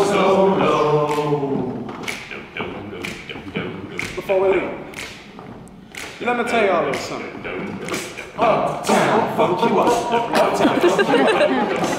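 A group of young men sings together in close harmony in a large echoing hall.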